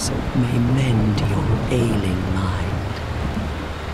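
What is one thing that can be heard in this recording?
Rain splashes into shallow water.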